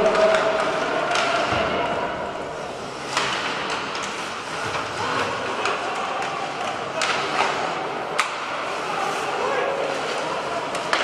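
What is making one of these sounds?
A crowd murmurs in a large echoing arena.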